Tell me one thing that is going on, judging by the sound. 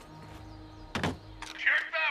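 A button clicks once.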